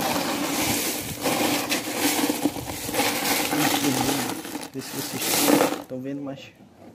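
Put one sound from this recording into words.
A hand rummages through ice cubes, which rattle and crunch.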